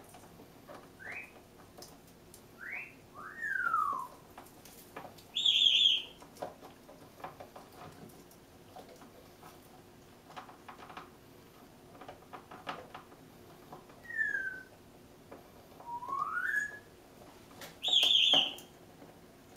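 A parrot whistles and squawks in short bursts.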